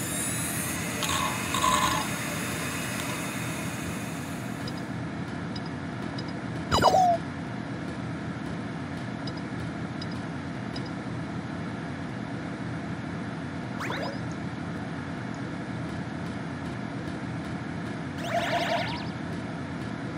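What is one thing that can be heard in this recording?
A computer game plays short electronic sound effects.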